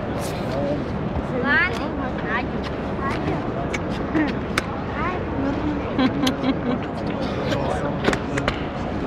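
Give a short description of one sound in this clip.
A crowd of men and women chatter all around in a large echoing hall.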